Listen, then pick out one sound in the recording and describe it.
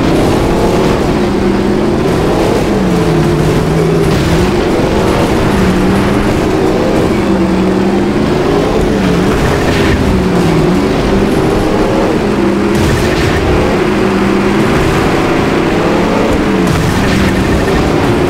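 Car engines roar and rise and fall in pitch as the cars race.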